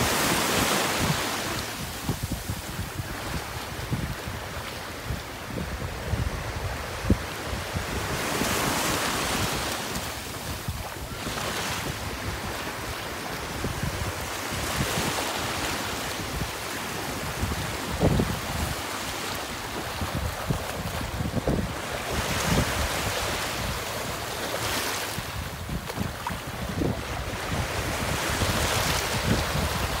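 Small waves wash up and break on the shore.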